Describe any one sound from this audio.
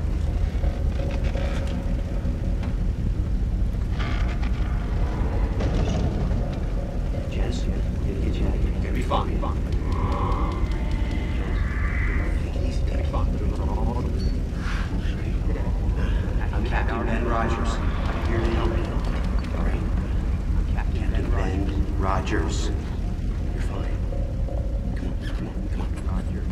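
A man speaks quietly and intensely, close by.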